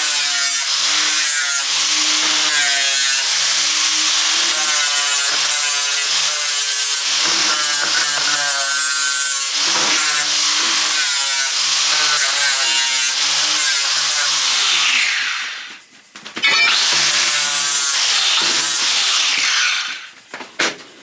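An angle grinder whines loudly, grinding metal.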